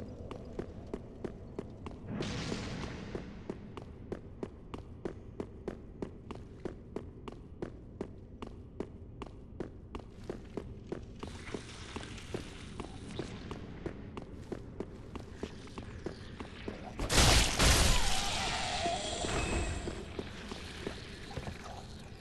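Armoured footsteps clank quickly on stone in an echoing passage.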